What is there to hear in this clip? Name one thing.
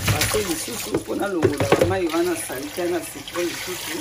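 Water pours out of a tipped basin.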